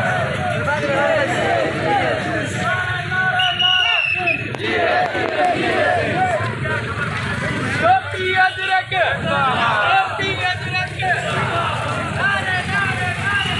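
A crowd of men chants loudly and together outdoors.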